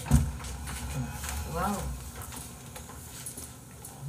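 A wooden table knocks on a wooden floor as it is set down.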